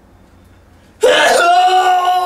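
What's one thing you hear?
A young man talks briefly.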